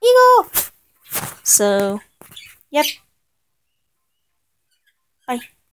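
Cartoon bird calls squawk and chirp in short bursts.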